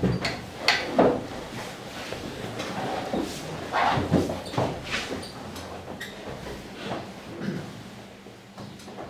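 Papers rustle and things knock on a desk.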